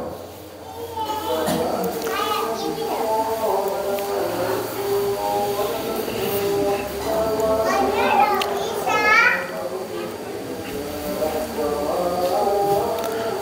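A man chants melodically through a microphone.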